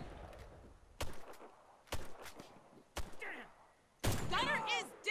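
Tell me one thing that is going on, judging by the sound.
Rifle shots crack sharply, one after another.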